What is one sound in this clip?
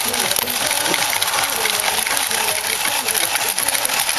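A small toy motor whirs and clicks as a coin bank's mechanism moves.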